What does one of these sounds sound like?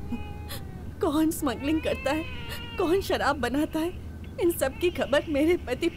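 A woman wails and sobs loudly, close by.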